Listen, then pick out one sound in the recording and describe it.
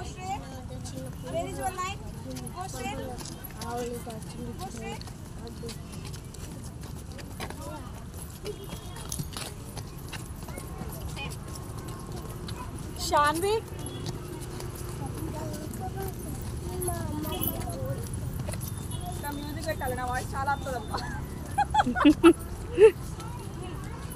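Young children chatter and call out close by.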